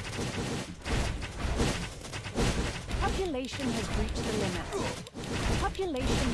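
Swords clash repeatedly in a busy battle.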